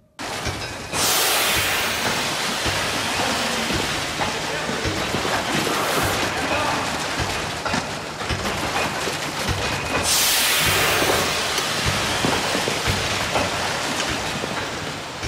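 Machinery hisses and whirs steadily in a large echoing hall.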